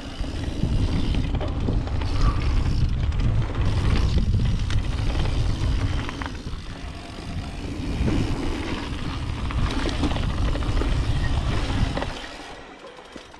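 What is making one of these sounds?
Bike tyres roll and crunch over a dirt trail.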